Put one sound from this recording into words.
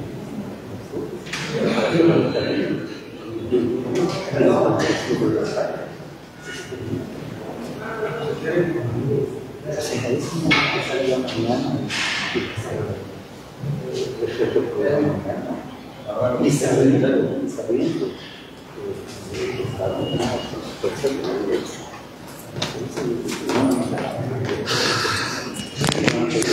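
A man speaks calmly and steadily close by.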